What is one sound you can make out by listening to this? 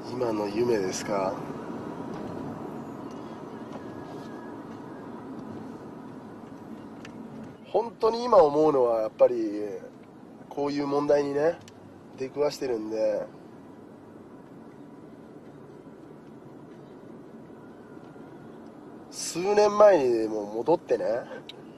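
A man talks calmly on a phone, close by.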